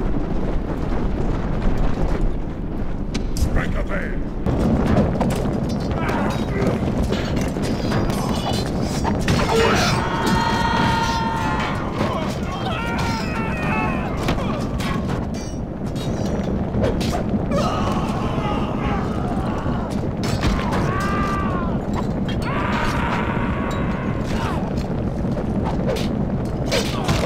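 Many soldiers shout and cry out in battle.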